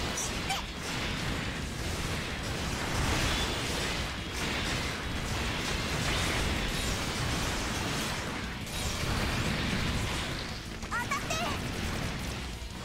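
Gunfire and energy blasts crackle and roar nonstop.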